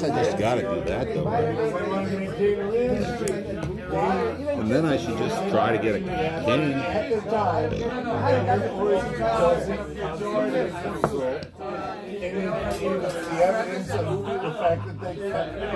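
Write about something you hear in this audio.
A chess piece taps down on a wooden board.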